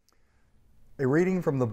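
A middle-aged man begins speaking calmly through a microphone.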